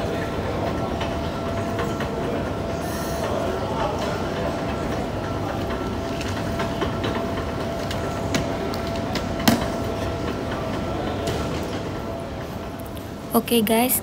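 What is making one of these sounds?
A baggage conveyor belt rumbles and hums steadily.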